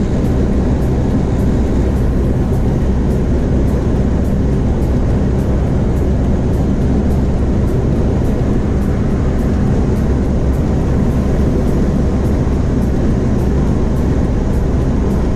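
Tyres roar on a wet road.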